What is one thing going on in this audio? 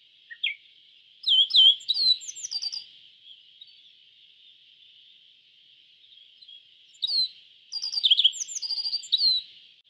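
A small bird sings in short bursts of high, sweet chirps and trills.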